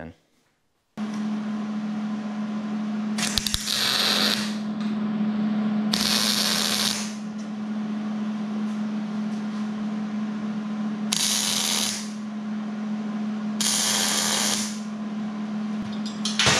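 A welding machine hums steadily.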